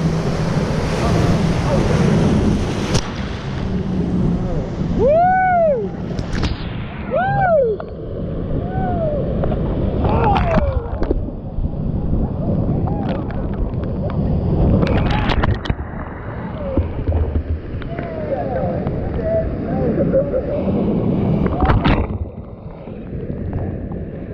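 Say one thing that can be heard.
Whitewater rapids roar loudly and steadily close by.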